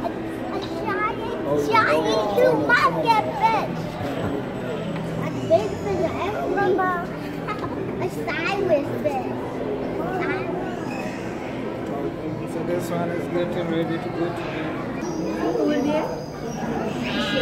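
A young child talks and exclaims excitedly close by.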